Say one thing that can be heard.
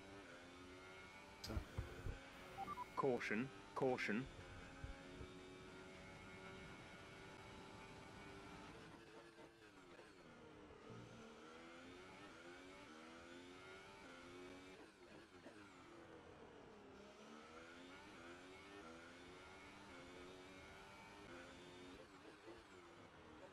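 A racing car engine whines loudly, rising and falling in pitch as gears shift.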